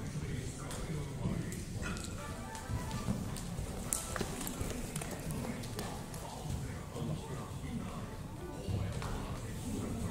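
A horse's hooves thud on soft sand as it canters past.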